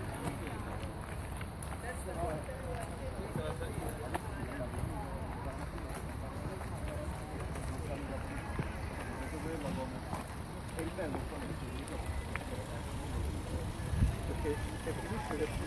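Footsteps shuffle on asphalt.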